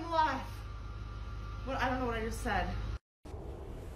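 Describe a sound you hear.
A woman speaks loudly and with animation nearby.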